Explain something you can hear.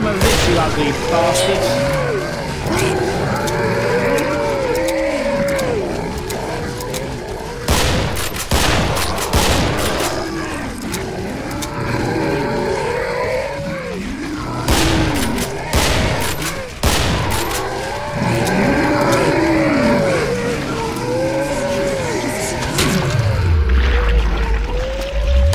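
Zombies moan and groan in a crowd.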